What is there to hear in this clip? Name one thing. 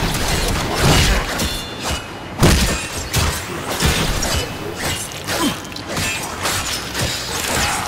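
Blades swish and clash in quick strikes.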